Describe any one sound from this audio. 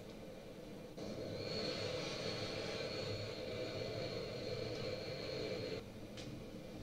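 Jet engines roar loudly as a plane passes close by.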